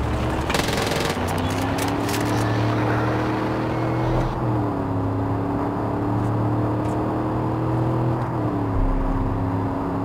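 A car engine hums steadily, with its pitch shifting as the gears change.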